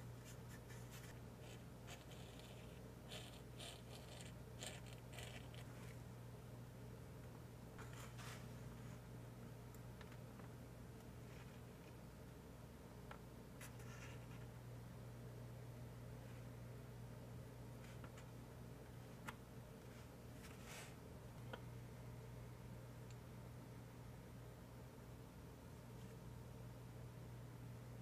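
Fingers rub and tap on soft foam pieces.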